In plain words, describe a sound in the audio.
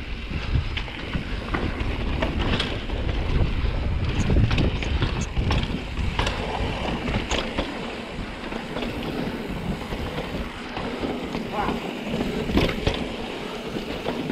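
Bike tyres roll and crunch over rough rock and dirt.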